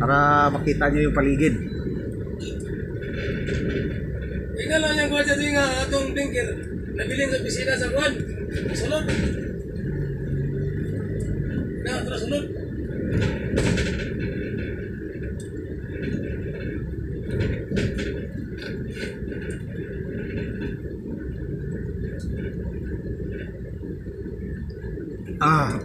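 A vehicle engine rumbles steadily.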